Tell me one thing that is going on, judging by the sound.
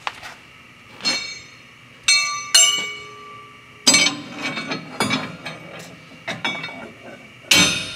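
Metal tools clank and ring against a steel leaf spring.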